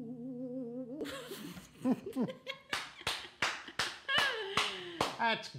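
A young woman laughs into a microphone.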